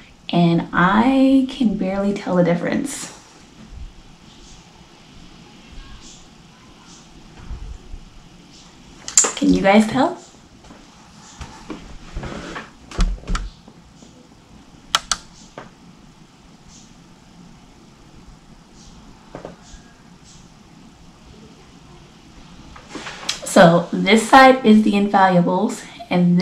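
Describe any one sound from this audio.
A young woman talks with animation close to a microphone, pausing often.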